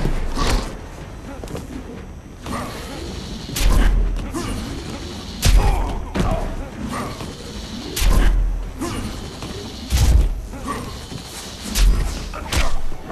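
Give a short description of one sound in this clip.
Punches and kicks land with heavy thuds and whooshes.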